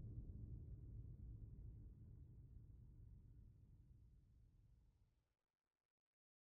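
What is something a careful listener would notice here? A fire burns with a low, steady roar.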